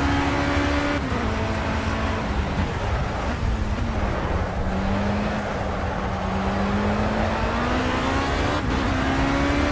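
A racing car engine slows down while braking for a corner, then climbs again.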